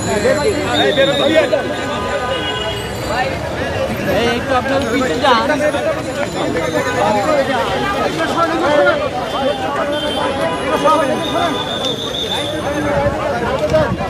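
A crowd of men shouts and talks over one another close by.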